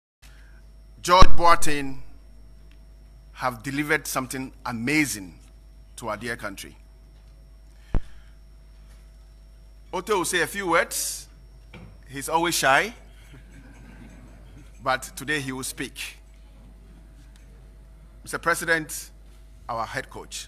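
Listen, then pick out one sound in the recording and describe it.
A man speaks steadily into a microphone, with pauses between phrases.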